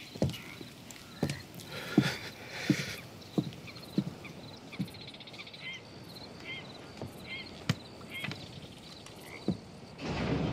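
Boots thud slowly on wooden planks.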